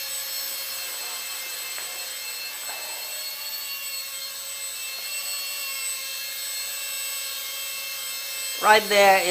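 A small drone hums with a steady high whine as it hovers.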